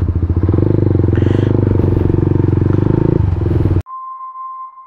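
A motorcycle engine revs hard and loud, close by.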